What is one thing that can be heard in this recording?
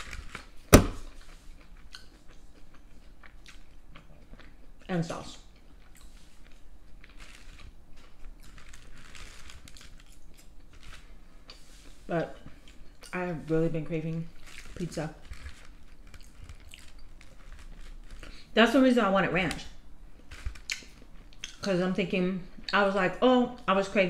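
A young woman chews food with quiet mouth sounds.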